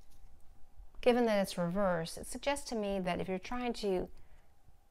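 A middle-aged woman speaks calmly and close to a microphone.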